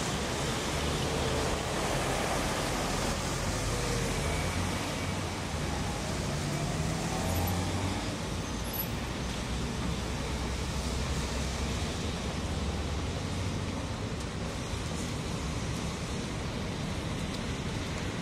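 An electric tram rolls over rails.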